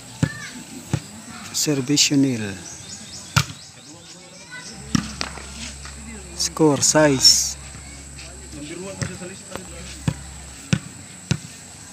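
A ball thuds sharply as it is kicked.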